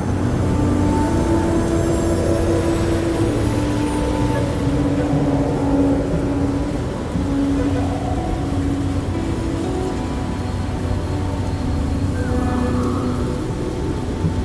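A soft bright chime rings out several times.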